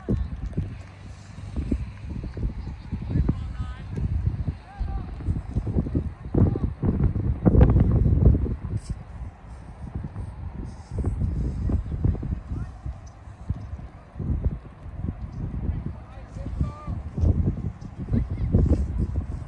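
Wind blows in gusts across an open field outdoors.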